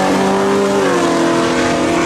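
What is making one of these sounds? A car engine's pitch drops sharply as the car shifts gear.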